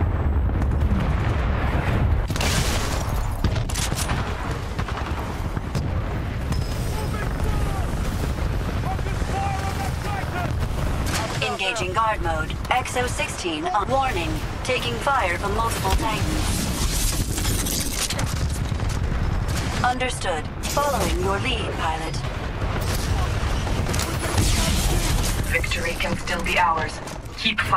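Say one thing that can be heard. Gunfire rattles and booms in rapid bursts.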